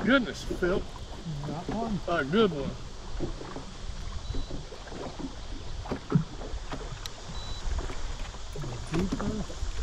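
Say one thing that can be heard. A fishing reel clicks as a line is wound in.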